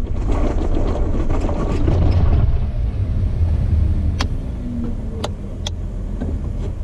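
Tyres crunch slowly over rocks.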